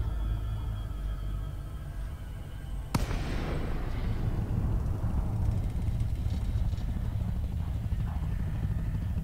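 A spacecraft engine rumbles low and steadily.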